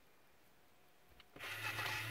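A plastic toy button clicks as it is pressed.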